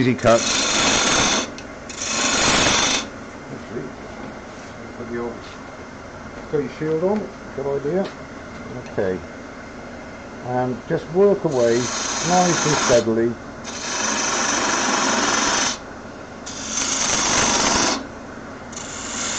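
A gouge cuts into spinning wood on a lathe in loud bursts.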